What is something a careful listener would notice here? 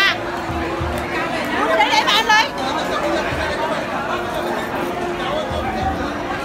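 A crowd of people chatters nearby in a busy hall.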